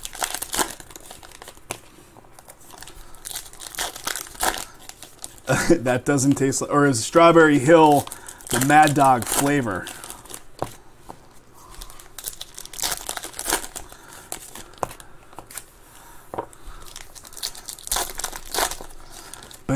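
Plastic wrappers crinkle and rustle as packs of cards are torn open.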